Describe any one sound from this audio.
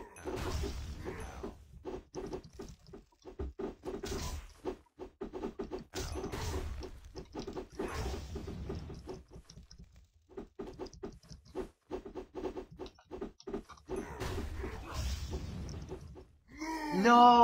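Quick game combat sounds tap and thud repeatedly.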